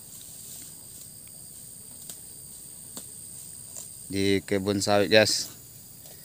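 A cow tears and munches grass close by.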